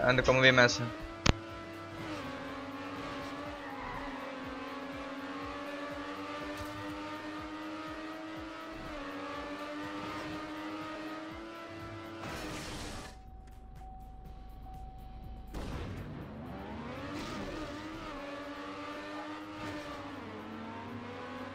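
A race car engine roars and revs up and down.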